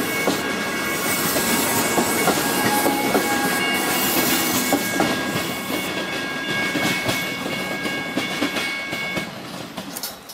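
A level crossing bell rings steadily.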